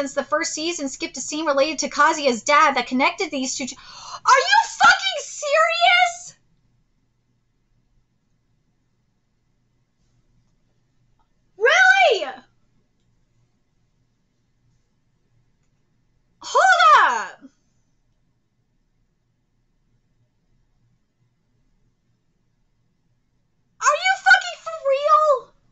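A young woman talks with animation, close to a microphone, in short bursts with long pauses.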